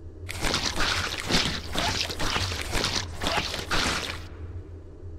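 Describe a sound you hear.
Glass cracks and shatters under repeated blows.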